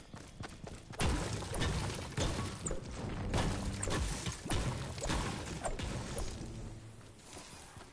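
A pickaxe strikes rock with loud, rapid thuds.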